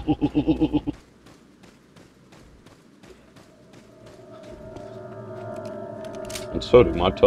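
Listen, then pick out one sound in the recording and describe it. Footsteps crunch steadily on dry leaves.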